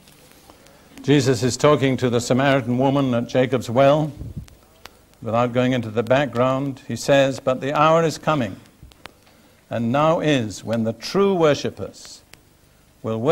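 An elderly man preaches through a microphone in an echoing hall, pausing between phrases.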